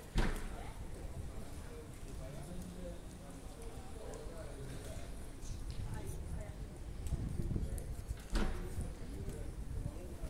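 Men and women talk faintly in the distance outdoors.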